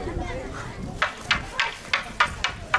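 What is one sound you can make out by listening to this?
Wooden staffs clack sharply against each other.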